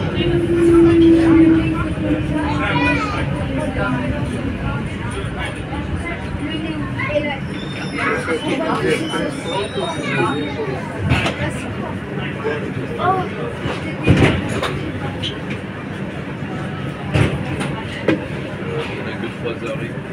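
A subway train rumbles along the track with a steady low roar.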